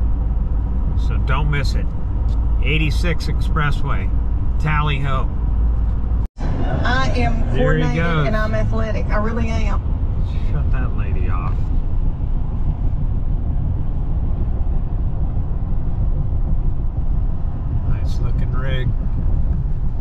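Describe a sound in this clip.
A man talks with animation close by inside the car.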